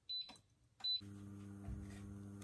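An induction cooktop hums steadily.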